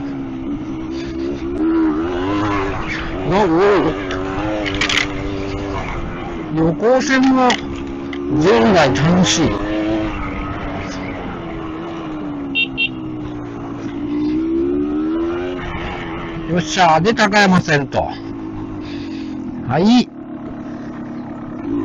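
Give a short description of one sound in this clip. A motorcycle engine hums steadily and revs up and down.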